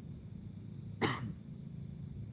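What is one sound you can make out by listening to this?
A lighter clicks as it is struck.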